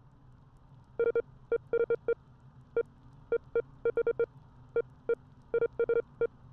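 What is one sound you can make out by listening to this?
Short electronic blips tick in quick succession.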